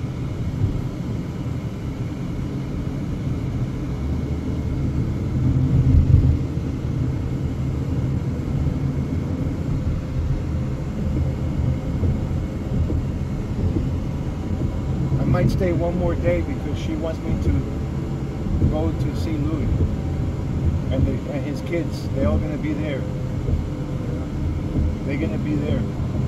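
Tyres rumble on a concrete road, heard from inside a moving car.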